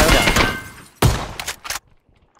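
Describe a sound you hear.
A shotgun fires a single loud blast indoors.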